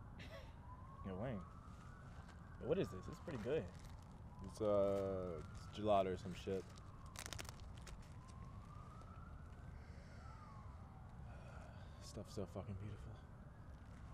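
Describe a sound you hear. A young man talks in short bursts nearby.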